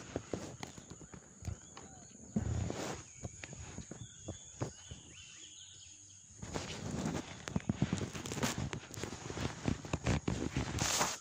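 A fishing rod rattles and knocks as it is handled close by.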